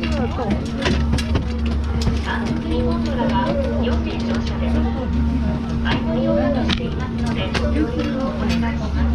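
Ski boots clomp on metal stair grates.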